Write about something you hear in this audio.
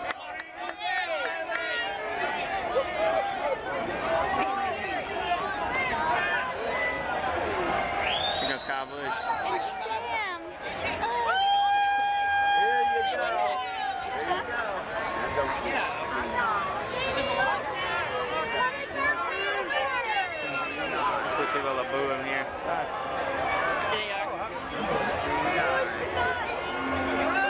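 A crowd of men and women chatter and call out nearby, outdoors.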